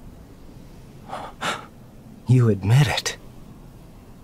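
A second man answers in a calm, low voice.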